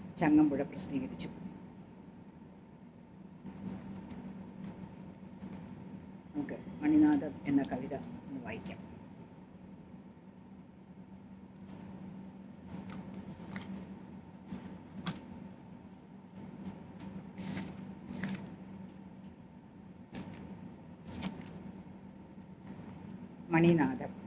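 A middle-aged woman reads aloud calmly into a nearby microphone.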